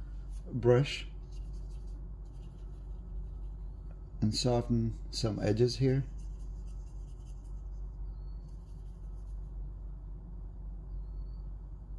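A brush dabs lightly on paper.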